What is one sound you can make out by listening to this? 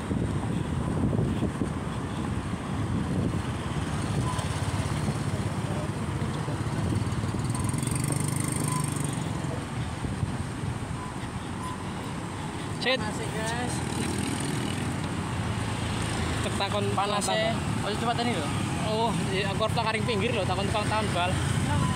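Motorcycle engines idle and rumble nearby, outdoors in traffic.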